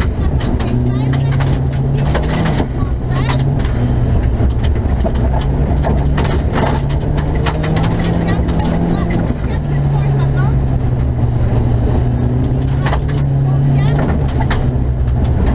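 A rally car engine roars loudly and steadily from inside the cabin.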